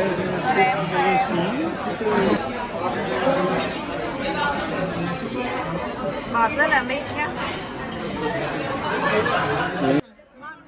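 A crowd of men and women chatter in a busy, echoing room.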